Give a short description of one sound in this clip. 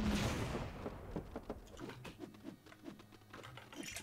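Small plastic pieces clatter and click.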